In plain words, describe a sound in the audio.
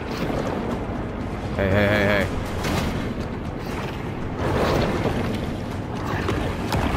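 A deep underwater rumble swirls steadily.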